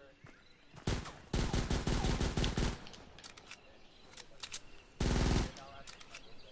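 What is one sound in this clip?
A rapid-fire gun shoots in short bursts.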